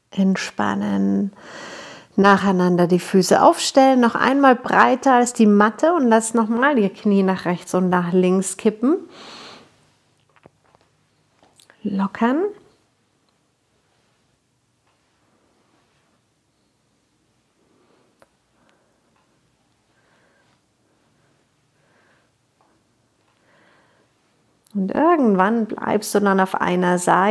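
A woman speaks calmly and clearly, giving slow instructions close to a microphone.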